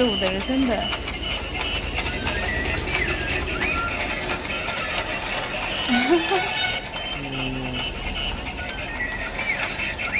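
A plastic toy track clicks and rattles steadily as small figures climb and slide.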